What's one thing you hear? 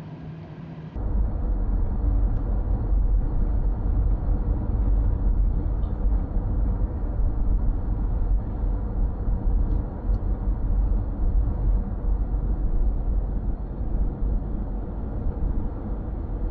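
Wind buffets a moving car with a low rumble.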